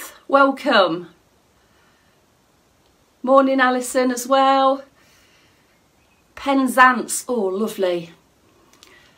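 A woman talks close up in short, animated bursts.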